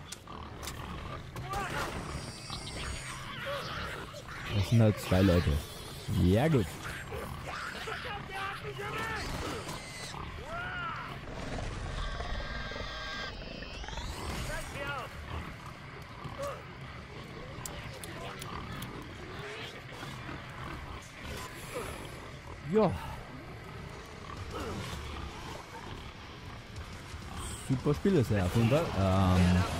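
Monsters growl and snarl.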